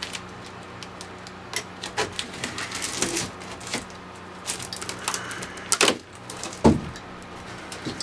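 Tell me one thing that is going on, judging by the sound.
Packing tape rips and crackles as a cardboard box is slit open.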